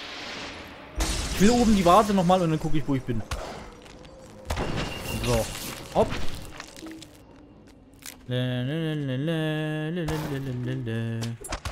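A magic spell whooshes and crackles in bursts.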